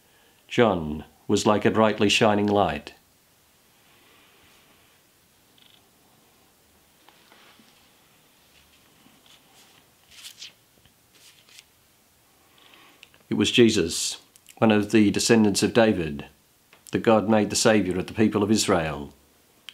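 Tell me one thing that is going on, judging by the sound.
A man speaks slowly and calmly close to a microphone, with long pauses.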